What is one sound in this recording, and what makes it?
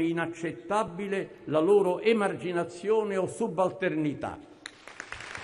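An elderly man speaks solemnly into a microphone in a large echoing hall.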